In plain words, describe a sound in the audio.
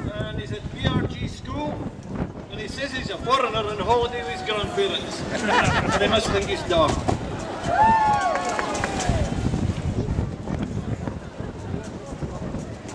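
Water splashes as swimmers move about.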